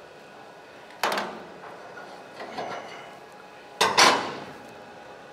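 A metal bar clanks and scrapes against steel.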